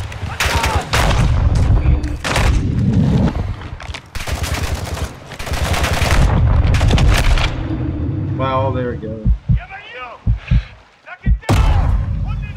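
Gunshots fire in loud, rapid bursts.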